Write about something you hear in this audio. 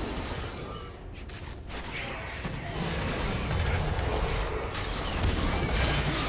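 Magic blasts and impacts thud repeatedly.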